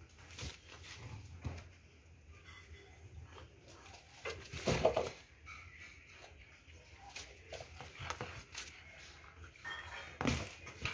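Paws scrape and shuffle on a hard floor.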